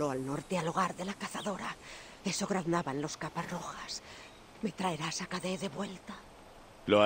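An elderly woman speaks close by in a pleading voice.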